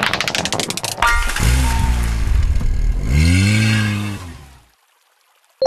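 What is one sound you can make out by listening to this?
A sparkling reward jingle plays with a falling tune.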